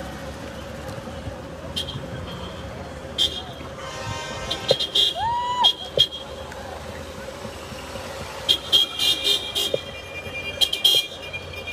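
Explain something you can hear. A crowd of men and women talks and calls out outdoors.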